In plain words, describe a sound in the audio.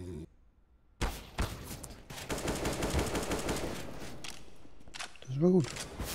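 A rifle fires short bursts of loud shots.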